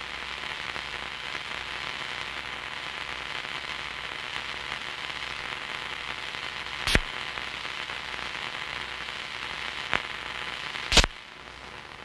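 Water rushes and fizzes close by.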